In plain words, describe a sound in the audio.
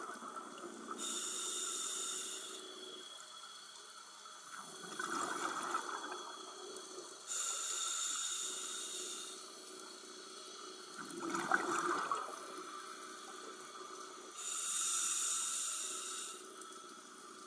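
Air bubbles from a diver's regulator rush and hiss out.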